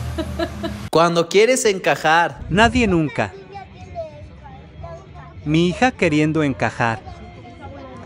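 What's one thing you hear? Young girls chatter and laugh nearby.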